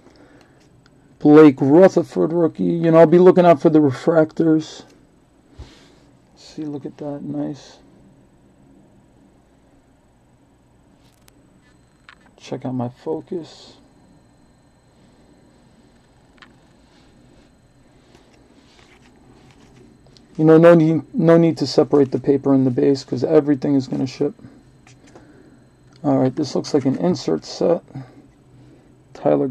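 Trading cards rustle and slide against each other as they are shuffled by hand.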